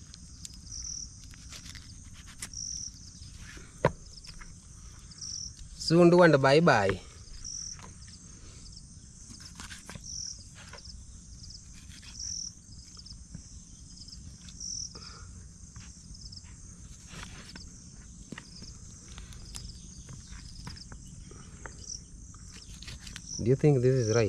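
A knife cuts through raw chicken meat and bone with soft scrapes and clicks.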